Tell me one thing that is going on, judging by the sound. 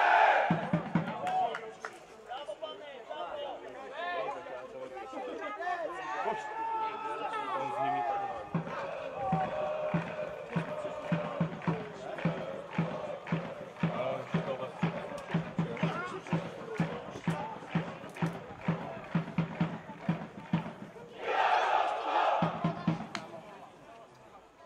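A crowd chants from stands some distance away, outdoors.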